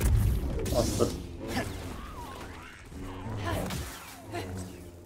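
A lightsaber hums loudly.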